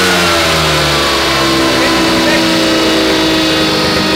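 A man speaks with animation close by over the engine noise.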